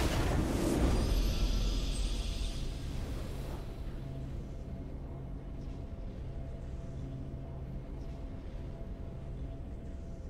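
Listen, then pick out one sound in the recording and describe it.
A triumphant fanfare of music plays steadily.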